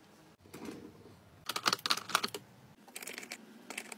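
Plastic pens clatter softly in a drawer.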